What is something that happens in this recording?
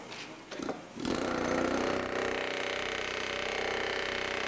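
A power tool grinds steadily against metal.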